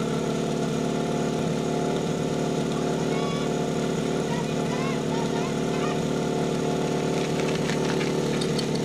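A pump engine runs with a steady hum.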